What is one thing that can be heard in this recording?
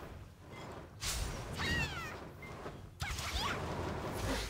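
Blades slash and strike with sharp hits.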